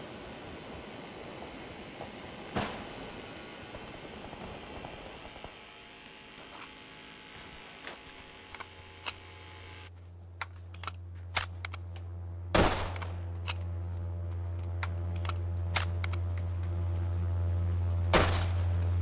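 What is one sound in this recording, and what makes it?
Footsteps crunch quickly on gravel and grass.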